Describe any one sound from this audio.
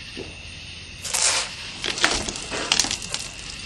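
A man spits and sputters out foaming liquid.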